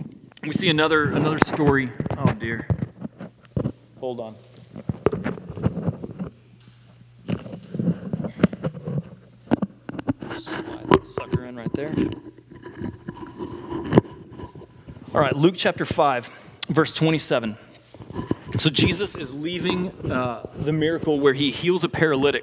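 A man speaks with feeling into a microphone in a large echoing hall.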